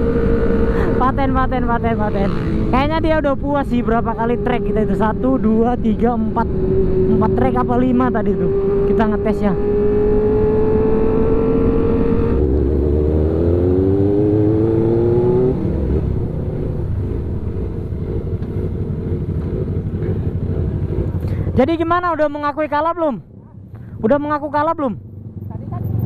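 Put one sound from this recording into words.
Nearby motorcycle engines rev loudly, rising and falling in pitch.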